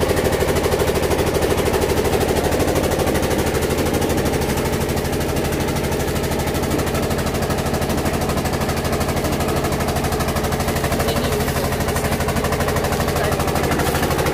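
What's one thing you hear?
A machine crushes sugar cane with a grinding crunch.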